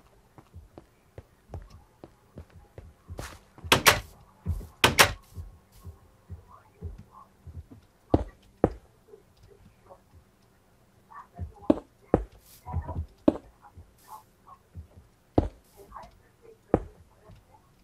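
Footsteps thud softly on grass and stone.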